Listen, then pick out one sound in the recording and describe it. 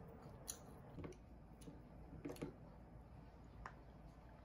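A spoon clinks against a ceramic cup.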